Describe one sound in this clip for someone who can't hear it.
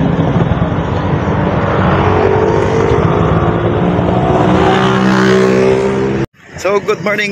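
A tricycle engine rumbles and putters close by.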